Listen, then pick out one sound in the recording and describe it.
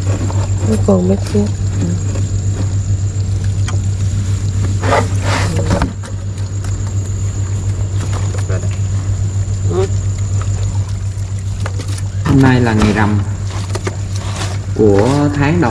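Small shrimp rustle and patter as hands scoop them.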